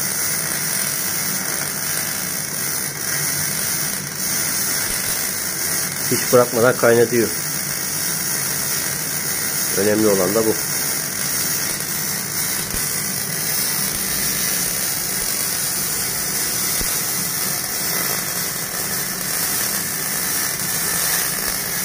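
An electric welding arc crackles and sizzles steadily.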